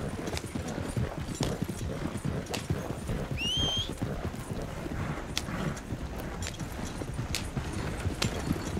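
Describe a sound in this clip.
A wooden wagon rattles and creaks over a bumpy dirt track.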